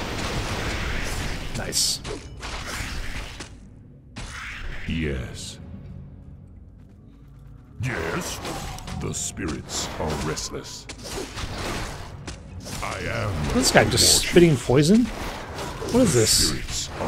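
Weapons clash and thud in a game battle.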